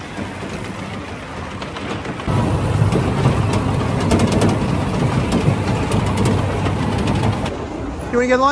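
A small coaster car rumbles and clatters along its track.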